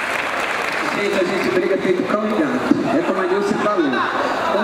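A woman speaks with animation into a microphone, heard over loudspeakers.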